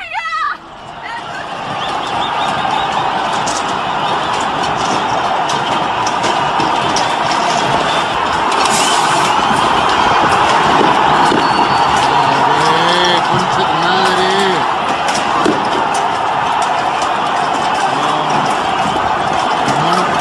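A large crowd roars and chants outdoors.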